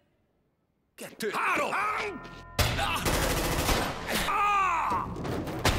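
A man yells out loudly.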